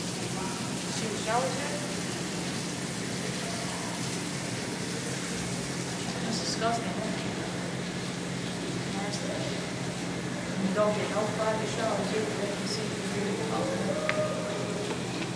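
A teenage boy speaks briefly nearby.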